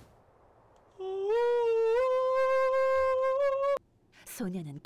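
A man holds a long, loud sung note close to a microphone.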